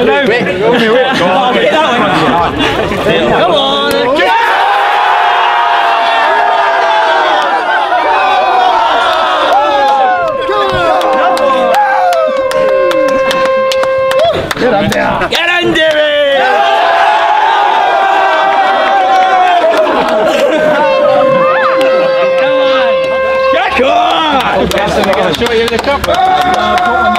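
A group of young men cheer and sing loudly outdoors.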